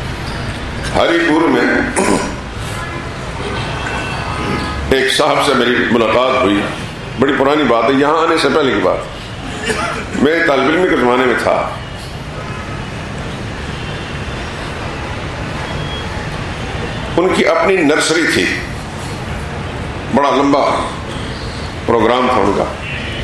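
An elderly man speaks slowly and earnestly into a microphone, in bursts with long pauses, in an echoing hall.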